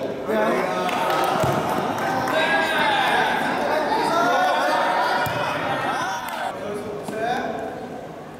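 A ball thuds against the floor.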